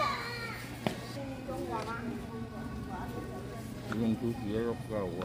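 Several people talk nearby.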